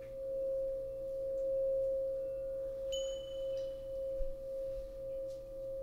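A glass singing bowl rings with a steady, pure tone.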